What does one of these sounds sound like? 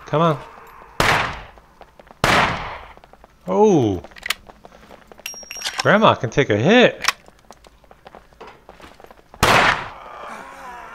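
A shotgun fires loud blasts that echo.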